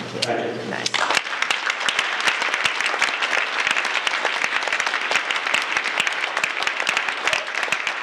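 An audience claps and applauds loudly.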